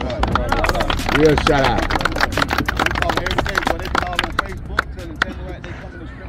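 A crowd of children and adults clap outdoors.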